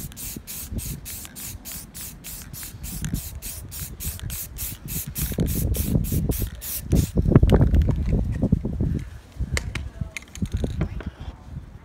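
Spray paint hisses from a can.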